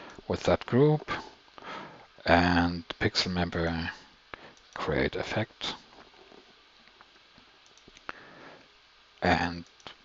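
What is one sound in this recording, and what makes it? A man speaks calmly and close to a headset microphone, in short bursts with pauses.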